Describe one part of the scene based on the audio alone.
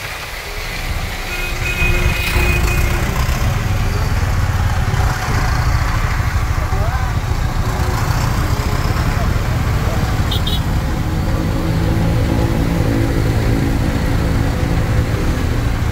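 Vehicle engines idle and rumble close by in slow traffic outdoors.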